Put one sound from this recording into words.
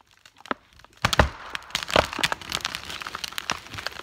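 A tree's trunk cracks and splinters loudly as it begins to fall.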